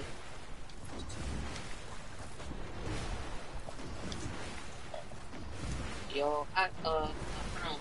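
Water splashes with swimming strokes.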